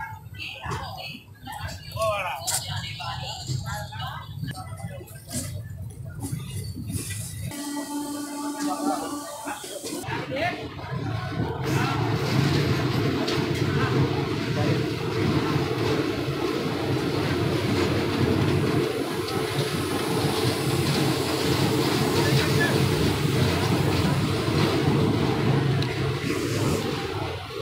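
A passenger train rolls along with its wheels rumbling on the rails.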